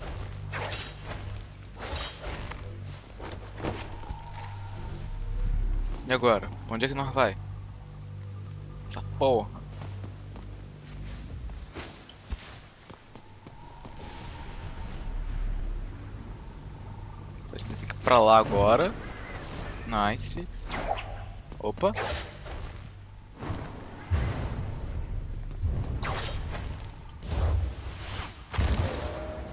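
A whip lashes and whooshes through the air.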